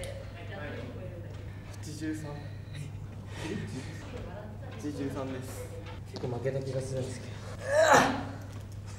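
Young men talk and react with animation nearby.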